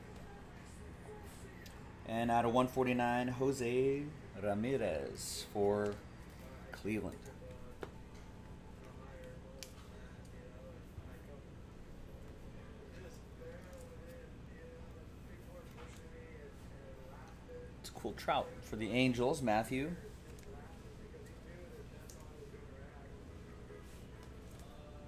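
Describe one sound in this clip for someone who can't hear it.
Cards rustle and slide in a man's hands.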